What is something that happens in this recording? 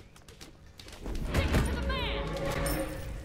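Weapons clash and spell effects burst in a fight.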